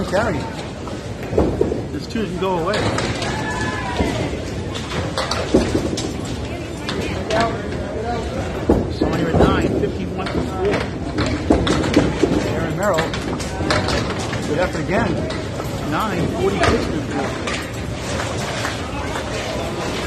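People chatter in the background of a busy echoing hall.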